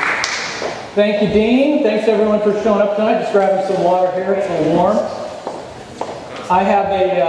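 A man speaks into a microphone in a large room.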